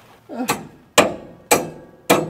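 A metal tool knocks against a metal pipe.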